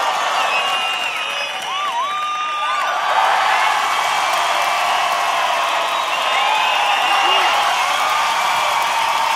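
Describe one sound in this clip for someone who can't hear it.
A large audience claps and cheers in an echoing hall.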